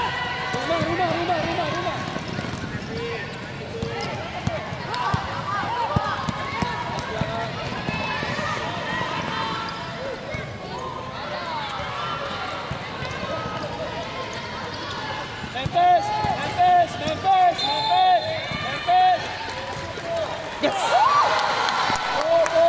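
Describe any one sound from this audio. A crowd of children and adults chatters and shouts in a large echoing hall.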